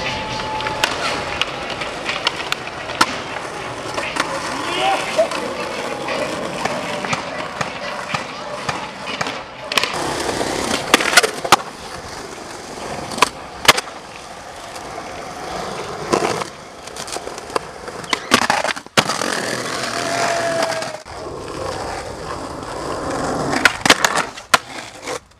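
A skateboard grinds and scrapes along a concrete ledge.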